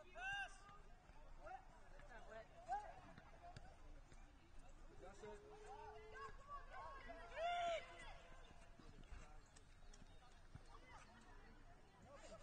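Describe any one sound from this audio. Young women shout short calls to each other far off across an open field.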